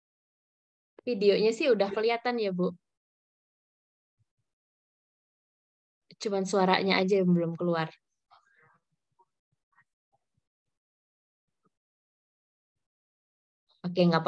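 A young woman speaks calmly over an online call, in short bursts with long pauses.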